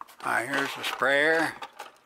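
Plastic parts rattle in a drawer as a hand sorts through them.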